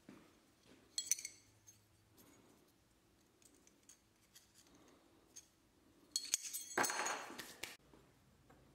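Thin metal blades clink and rattle against each other.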